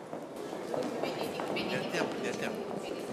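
A young child squeals excitedly.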